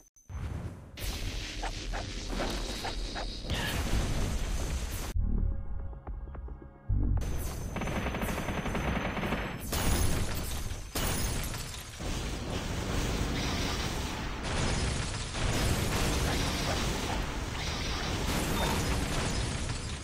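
Energy blasts boom and explode.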